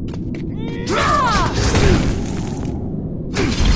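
A magic blast bursts with a loud crackling whoosh.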